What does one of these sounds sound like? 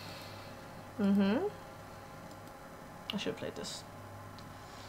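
A young woman speaks briefly and casually, close to a microphone.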